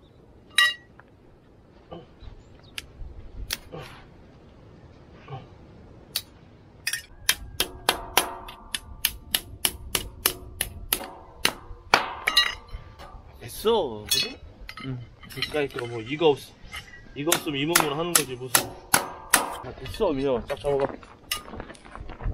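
A hammer strikes a metal stake in sharp, rapid blows.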